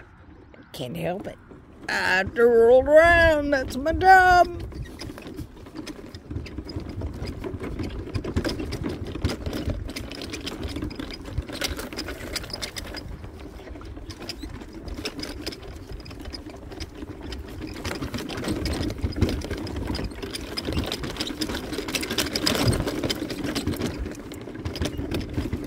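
Wheels roll and bump over grass.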